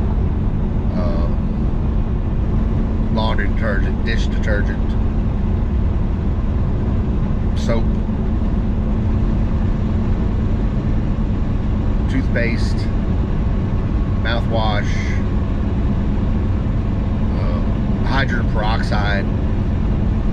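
A man talks calmly and close by, in short bursts.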